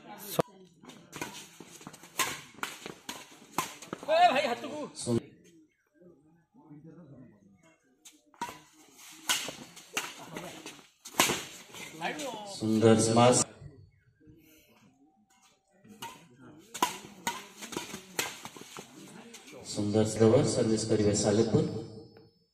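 Badminton rackets smack a shuttlecock in quick rallies.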